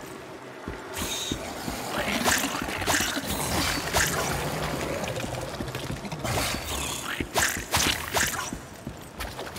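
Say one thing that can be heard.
Blades slash and strike in a fast fight.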